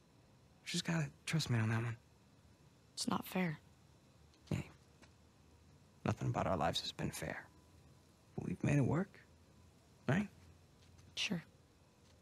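A young man speaks calmly and warmly.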